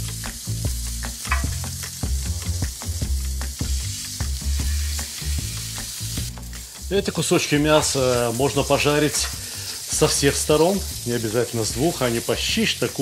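Metal tongs scrape and tap against a pan.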